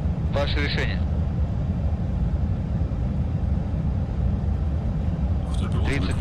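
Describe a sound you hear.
Aircraft engines drone with a steady low rumble.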